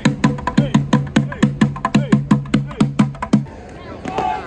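Drummers beat a fast rhythm on plastic buckets.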